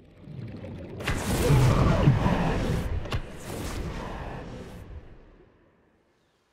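A loud rushing whoosh surges up suddenly and then slowly fades away.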